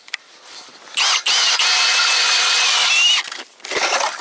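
An ice auger drills into ice with a steady grinding whine.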